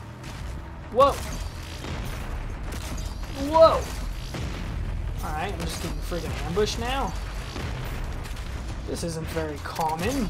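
A demon growls and roars nearby.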